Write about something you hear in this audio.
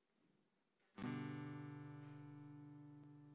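An acoustic guitar strums a chord that rings out and slowly fades.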